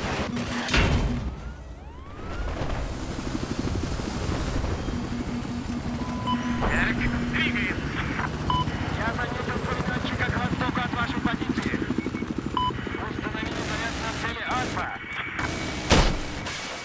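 A helicopter engine and rotor drone steadily.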